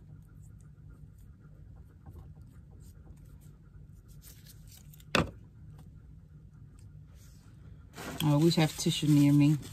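Paper rustles softly as it is peeled and handled.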